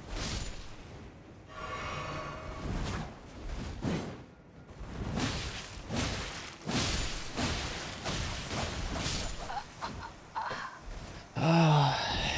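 Swords clash and heavy blows strike in a fast fight.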